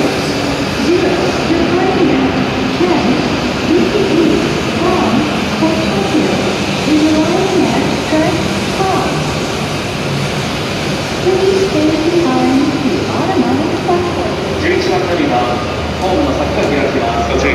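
A train rolls slowly past with a steady rumble.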